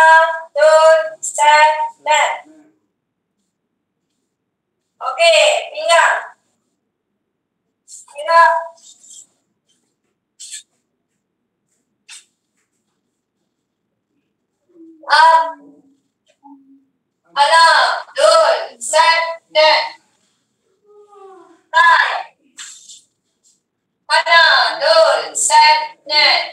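A woman speaks calmly over an online call, giving instructions in bursts with pauses.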